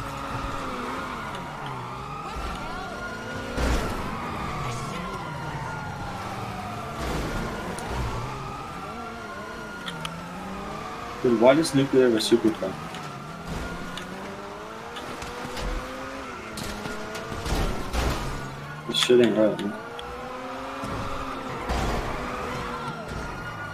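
A car engine revs up and down at speed.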